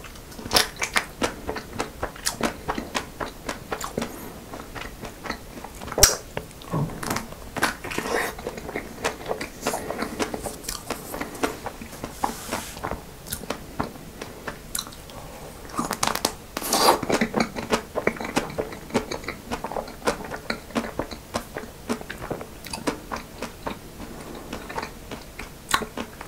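A young man bites and chews crunchy ice cream close to a microphone.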